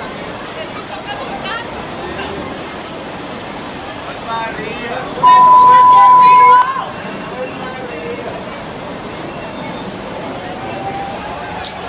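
A fairground ride whirs and clanks as it swings.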